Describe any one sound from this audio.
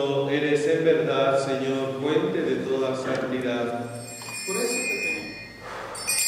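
An elderly man chants in a singing voice in a large, echoing hall.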